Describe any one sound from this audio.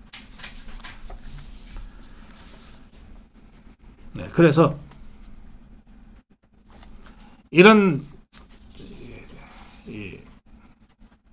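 A middle-aged man speaks into a microphone close by, reading out with emphasis.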